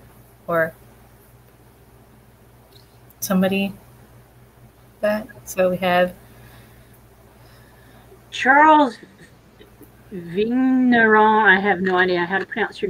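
A woman speaks in short bursts over an online call.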